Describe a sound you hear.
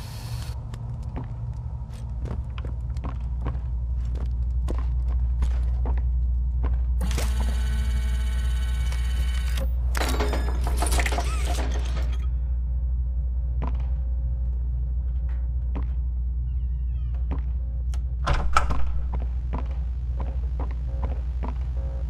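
Footsteps thud steadily on a wooden floor.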